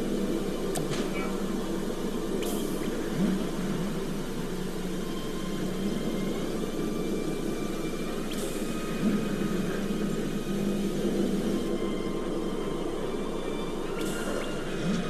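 Short electronic clicks sound now and then.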